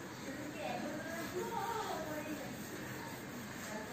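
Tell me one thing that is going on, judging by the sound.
A cloth rubs across a whiteboard.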